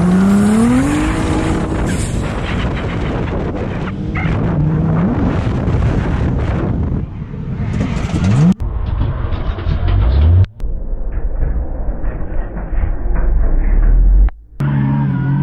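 A car engine roars and revs hard up close.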